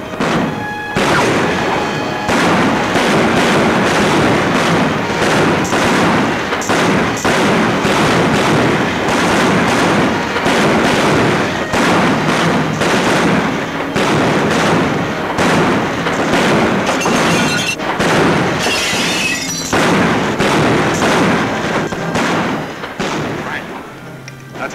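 Gunshots fire rapidly again and again, echoing.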